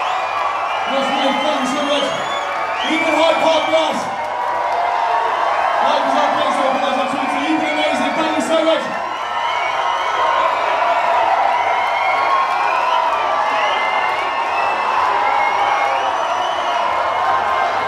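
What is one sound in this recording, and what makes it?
A large outdoor crowd cheers and sings loudly.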